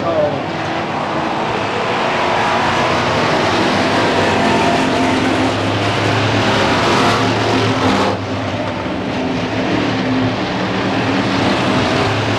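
Race car engines roar loudly and rise and fall in pitch.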